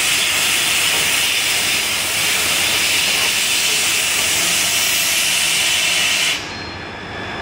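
A laser cutter hisses loudly as it cuts metal.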